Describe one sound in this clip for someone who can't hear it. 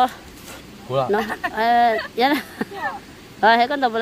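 A young woman laughs and talks.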